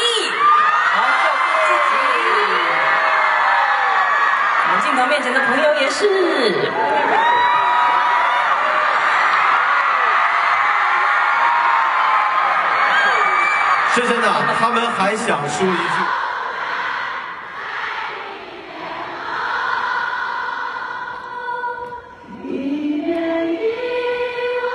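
A young man sings into a microphone, heard through loudspeakers in a large echoing hall.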